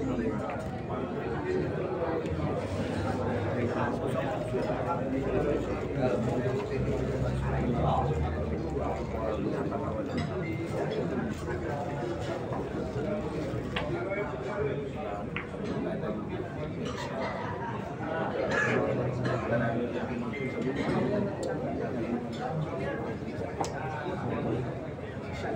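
A crowd murmurs and chatters indoors.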